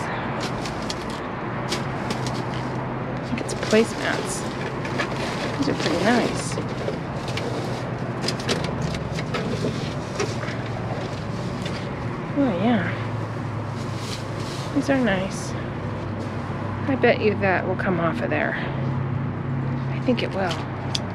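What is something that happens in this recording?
Plastic bags and wrappers rustle and crinkle close by.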